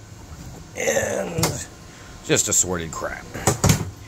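A plastic drawer slides open with a rattle.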